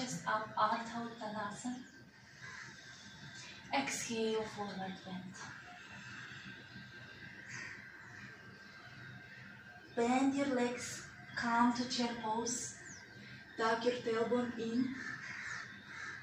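A woman speaks calmly nearby, as if giving instructions.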